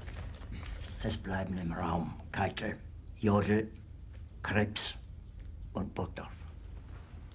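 A middle-aged man speaks quietly and tensely, close by.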